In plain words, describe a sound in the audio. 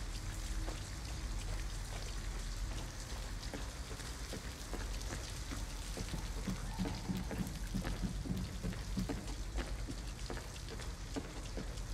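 Footsteps thud slowly on wooden boards.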